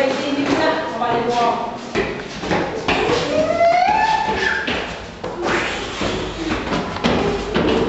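Footsteps patter on stairs.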